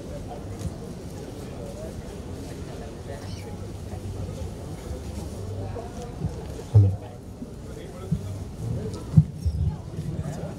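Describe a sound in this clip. A man speaks through a microphone over loudspeakers, echoing in a large open space.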